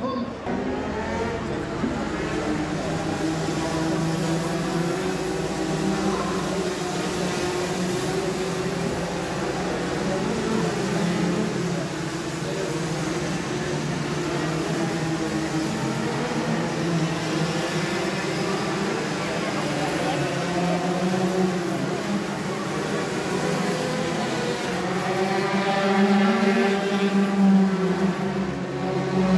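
Racing car engines drone and whine as cars pass one after another, with shifting pitch.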